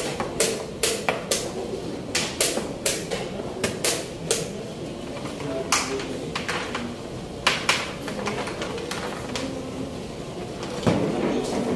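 Chess pieces clack sharply on a board.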